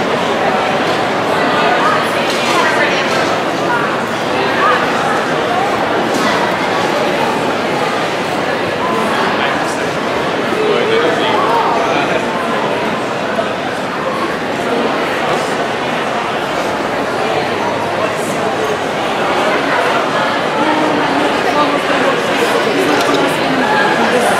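A crowd of men and women chatters and murmurs all around.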